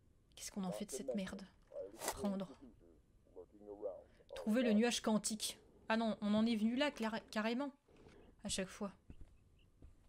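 A young woman talks with animation into a microphone close by.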